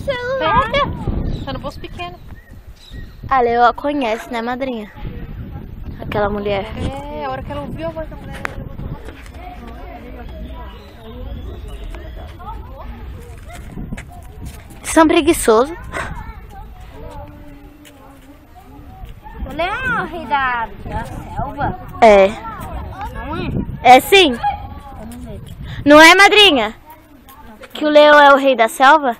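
Children talk and call out loudly close by, outdoors.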